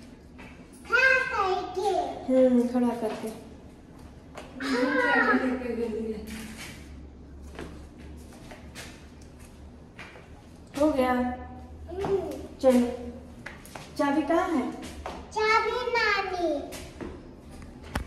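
A woman speaks close by in a lively, coaxing voice.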